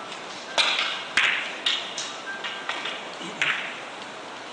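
Billiard balls click sharply against each other and the cushions.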